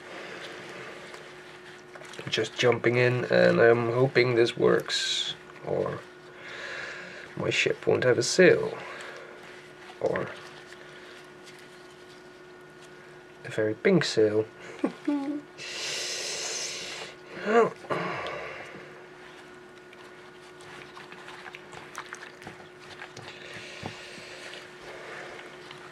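Wet fabric squelches and liquid sloshes as hands knead it in a bowl.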